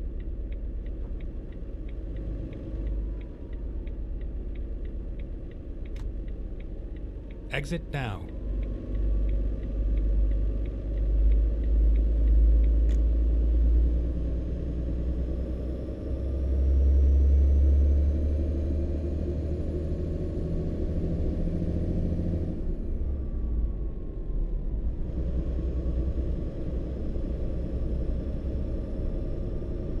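A truck engine rumbles steadily while driving, rising and falling with speed.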